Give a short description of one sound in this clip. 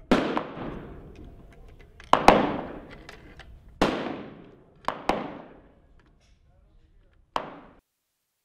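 A rifle bolt clicks and slides as it is worked by hand.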